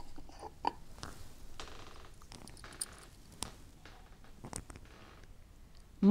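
Small objects click in an elderly woman's hands.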